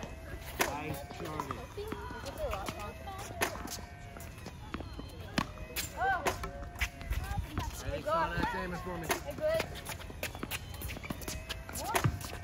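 Young girls chatter and call out outdoors.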